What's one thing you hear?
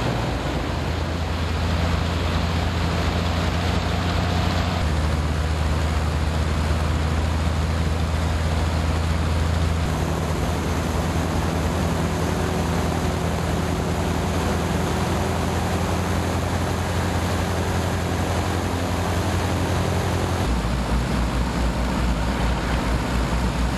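A propeller aircraft engine roars loudly and steadily close by.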